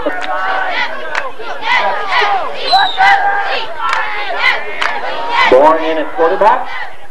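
A crowd of spectators shouts and cheers nearby.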